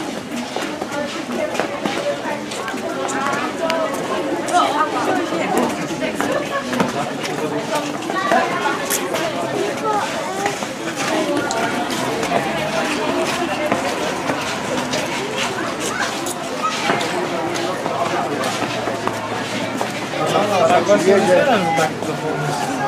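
A crowd of adults and children chatter as they walk.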